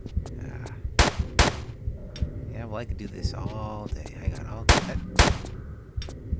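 Gunshots ring out in sharp, loud bursts.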